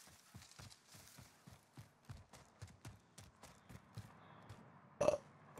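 Quick footsteps thud on dirt.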